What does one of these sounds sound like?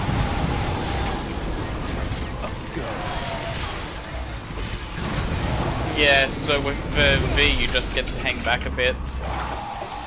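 Blades clash and slash rapidly in a fierce fight.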